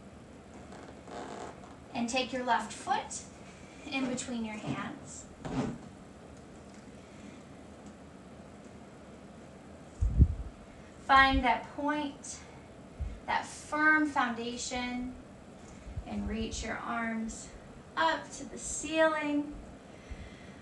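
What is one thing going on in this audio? A woman gives calm instructions close to a microphone.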